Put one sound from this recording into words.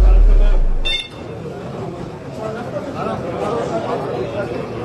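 A crowd of men murmurs and calls out in an echoing hall.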